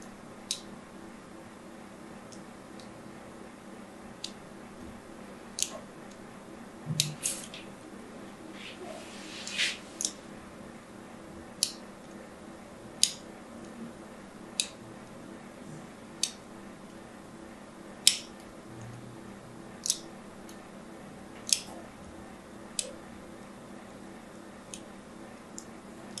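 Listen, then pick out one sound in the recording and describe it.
A blade scrapes and scratches across a bar of soap in sharp, crisp strokes.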